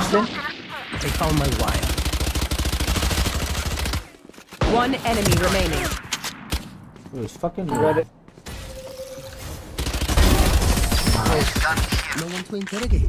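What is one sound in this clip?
A rifle fires in rapid bursts at close range.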